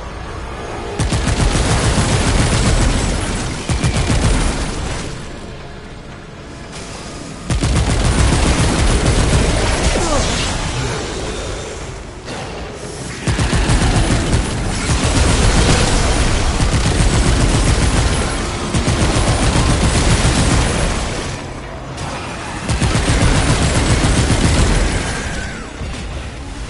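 A weapon fires rapid, crackling energy bursts in loud stretches.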